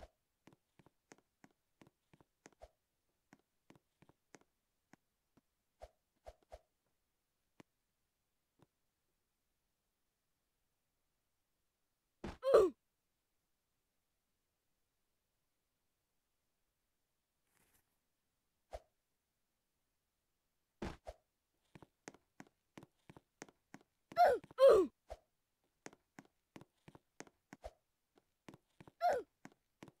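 Game footsteps tap lightly on the ground.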